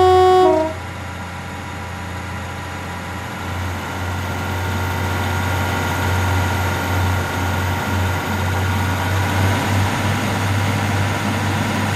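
Train wheels rumble and clatter over the rails.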